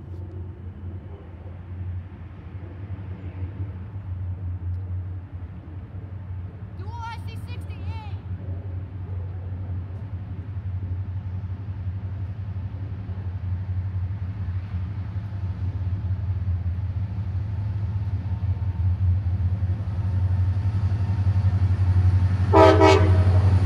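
A diesel train engine rumbles low and steadily, growing louder as it approaches.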